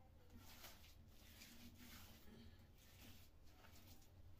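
A trowel scrapes wet plaster across a ceiling.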